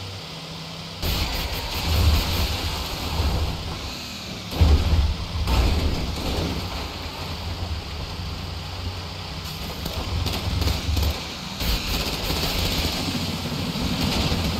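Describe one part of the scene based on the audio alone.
Tyres crunch and rumble over rough grass and dirt.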